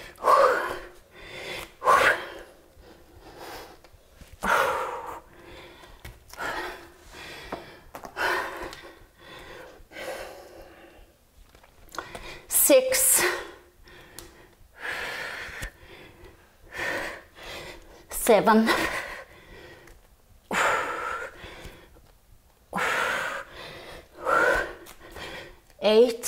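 A young woman speaks calmly and steadily, close to a microphone.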